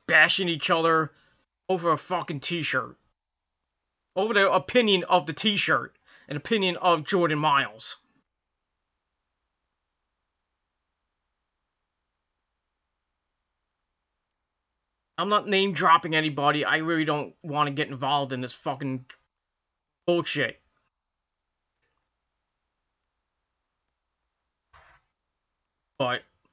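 A man talks close to a microphone, calmly and in short bursts with pauses.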